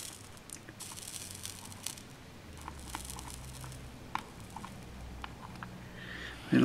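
Thin metal rods tick and click lightly against a hard surface.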